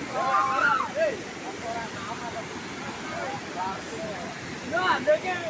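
Floodwater rushes and roars steadily.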